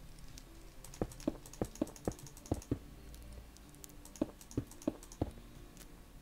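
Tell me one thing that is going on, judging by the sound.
Footsteps thud steadily on stone.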